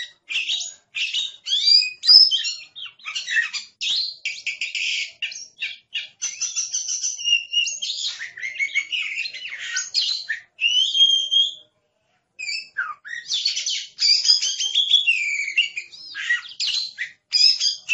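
A songbird sings a varied, whistling song up close, outdoors.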